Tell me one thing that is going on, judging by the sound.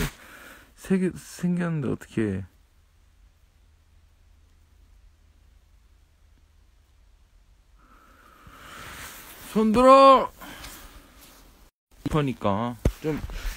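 A young man speaks close to a phone microphone, with pauses.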